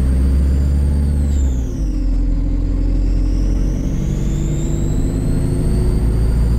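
A bus motor whines, its pitch falling and then rising again.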